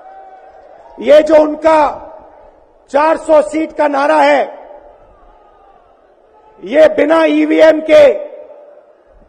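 A man speaks forcefully into a microphone over loudspeakers, in bursts with pauses.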